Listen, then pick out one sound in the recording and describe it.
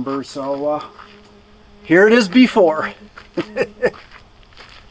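An older man speaks casually and close by.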